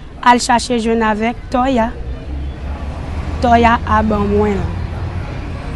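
A young woman speaks close by with emotion, in short bursts.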